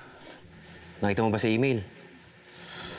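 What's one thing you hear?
A young woman answers in a worried tone, close by.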